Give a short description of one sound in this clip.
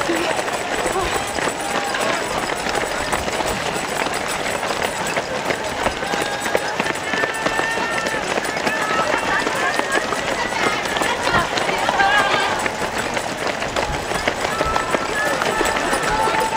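A crowd of spectators chatters and cheers nearby, outdoors.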